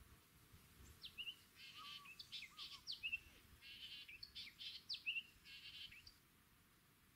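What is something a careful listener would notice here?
Birds call and chirp in the distance.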